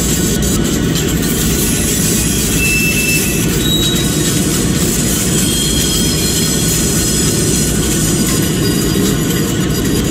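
Steel wheels roll and clatter on rails.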